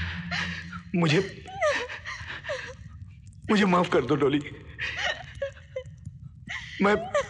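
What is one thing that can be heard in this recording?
A man speaks with emotion, close by.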